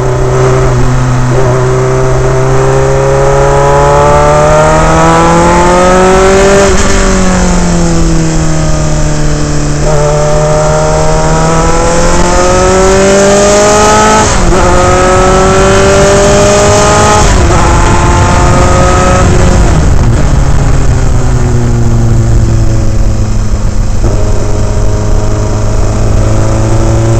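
Wind rushes loudly past the car.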